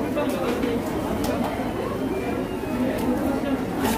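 Plastic trays clatter as they are handled.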